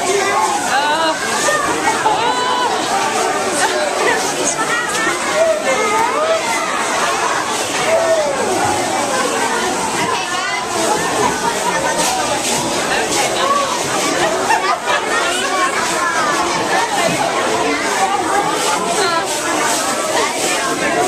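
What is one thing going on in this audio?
A crowd of adults chatters and cheers excitedly nearby.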